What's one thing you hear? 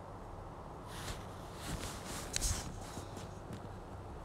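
Fabric rustles as hands handle and fold it.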